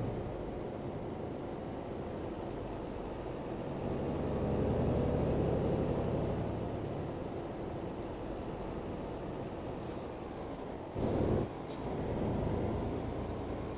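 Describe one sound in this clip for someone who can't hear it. A truck engine hums steadily and swells as the truck drives along.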